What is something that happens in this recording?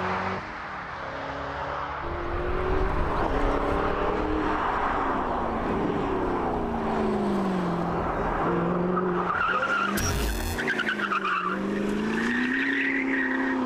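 A sports car engine roars and revs up and down as the car races around.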